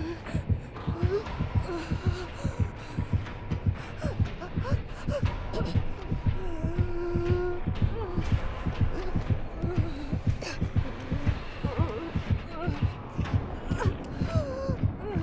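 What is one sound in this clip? A heart pounds loudly and quickly in a steady thumping beat.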